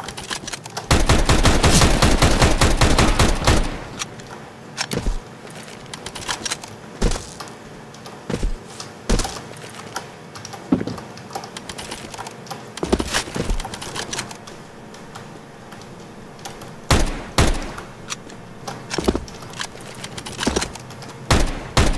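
Footsteps crunch steadily over grass and dirt.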